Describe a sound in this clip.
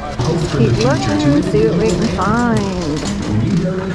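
A shopping cart rolls over a hard floor.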